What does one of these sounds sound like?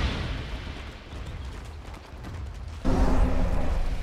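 Game units clash with hits and impacts.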